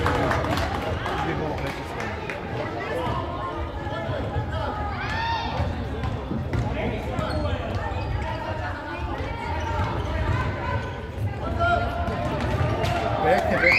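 A ball thuds off a foot now and then.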